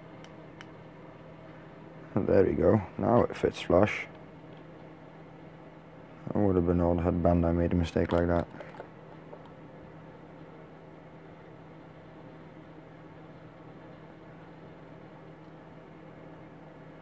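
Small plastic parts click and rustle in hands.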